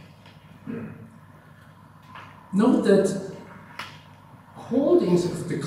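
A man lectures calmly into a microphone.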